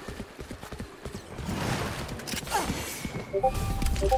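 A rushing watery whoosh sweeps past.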